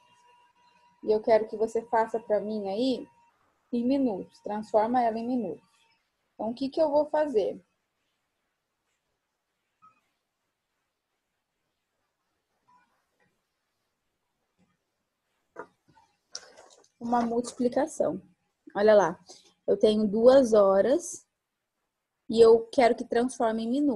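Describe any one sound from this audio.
A young woman speaks calmly and clearly through a computer microphone, pausing now and then.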